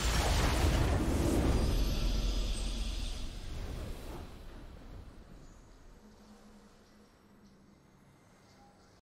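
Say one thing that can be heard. A triumphant game fanfare swells loudly and then slowly fades away.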